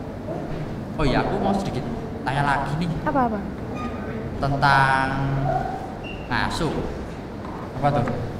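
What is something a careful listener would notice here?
A teenage boy talks with animation into a microphone.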